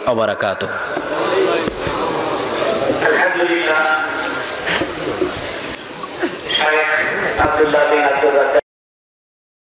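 A young man recites melodically into a microphone, heard through a loudspeaker system.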